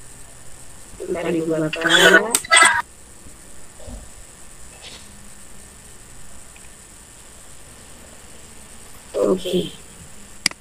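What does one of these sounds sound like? A young woman speaks briefly through an online call.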